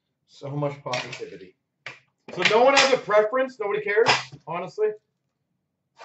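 A metal tin clatters as it is lifted and set down on a glass counter.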